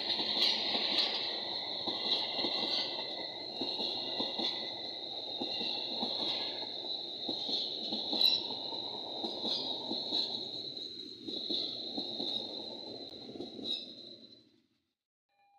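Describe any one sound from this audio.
Brakes or wheels squeal with a steady high whine.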